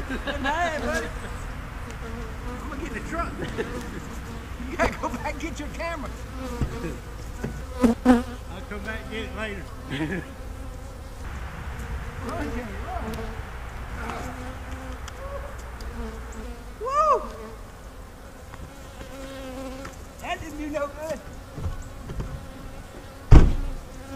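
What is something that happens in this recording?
Bees buzz steadily around a hive.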